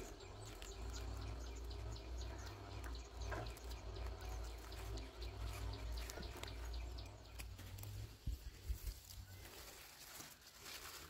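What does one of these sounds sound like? Leafy stems snap and rustle as they are picked by hand.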